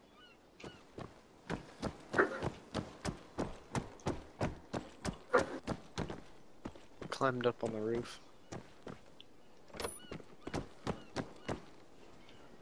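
Footsteps thud quickly on a hard floor and stairs.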